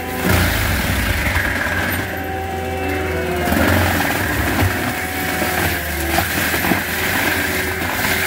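A heavy diesel engine of a tracked machine roars steadily.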